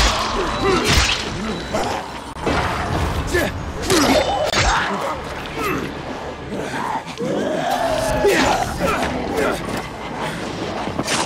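Creatures growl and snarl close by.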